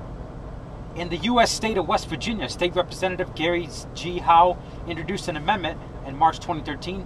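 A man speaks nearby with animation.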